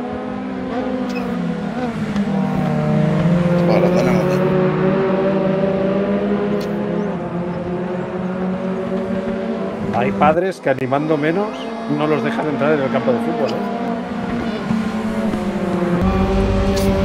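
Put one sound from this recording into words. Racing car engines drone and whine, rising and falling with gear changes.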